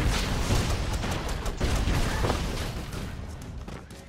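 Explosions boom and debris crackles.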